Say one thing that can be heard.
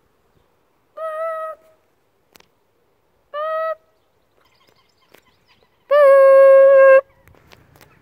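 A young boy hums short, steady notes close by.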